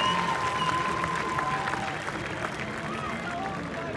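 A large outdoor crowd cheers.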